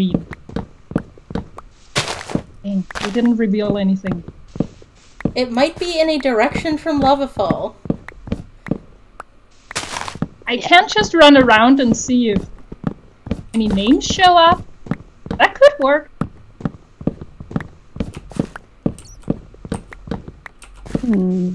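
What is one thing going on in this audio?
Game blocks break with quick repeated knocks.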